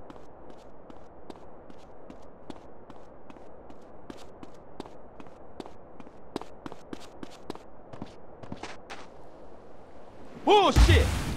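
Footsteps patter quickly on hard steps.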